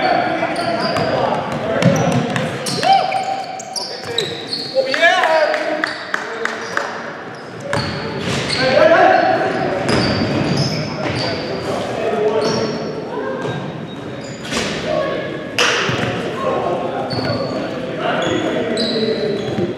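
A basketball bounces on a hard floor with echoing thuds.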